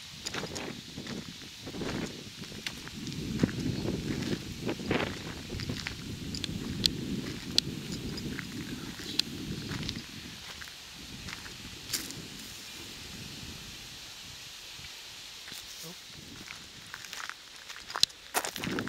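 Wind gusts roughly across the microphone outdoors.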